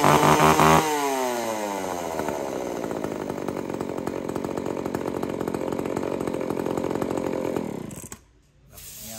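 A chainsaw engine runs loudly, then slows to an idle and cuts out.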